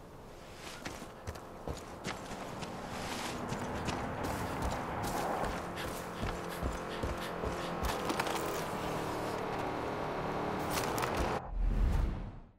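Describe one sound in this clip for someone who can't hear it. A young man talks casually into a microphone.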